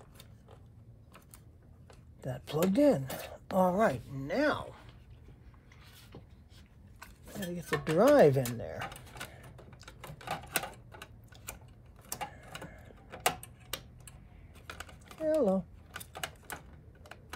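Plastic and metal parts click and rattle as they are handled.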